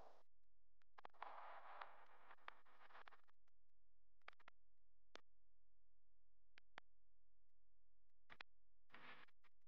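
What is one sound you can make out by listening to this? Paper prints rustle and slide as a hand shuffles them.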